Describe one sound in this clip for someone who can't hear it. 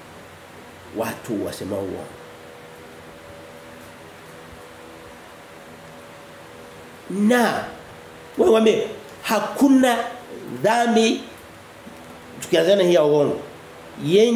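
A man speaks close by with animation, in bursts between pauses.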